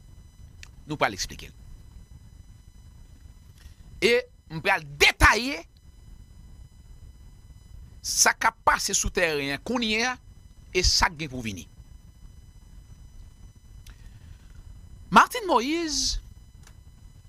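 A man speaks animatedly into a close microphone, in short bursts with pauses.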